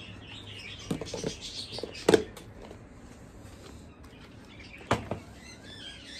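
A plastic lid clicks and knocks.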